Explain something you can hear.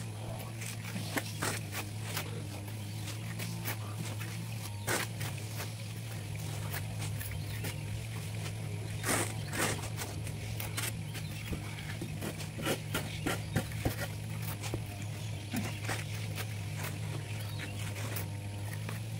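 A trowel scrapes and taps on bricks and mortar.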